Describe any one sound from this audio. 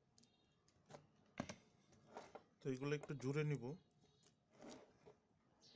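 Metal battery cells knock and clink together as hands shift them.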